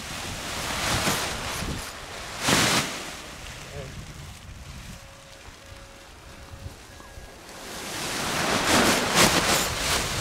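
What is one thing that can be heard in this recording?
A paraglider wing's fabric flaps and rustles as it fills with air.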